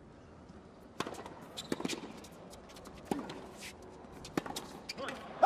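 A tennis ball is struck hard with a racket, back and forth.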